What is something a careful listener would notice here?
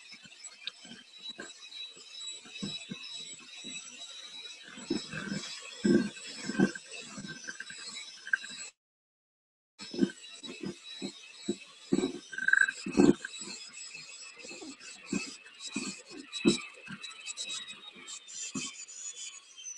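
Mixer beaters clatter and knock against a metal bowl.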